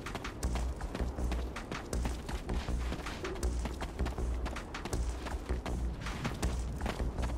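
Footsteps crunch quickly over rubble and gravel.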